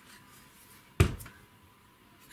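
A plastic bottle is set down on a wooden table with a sharp knock.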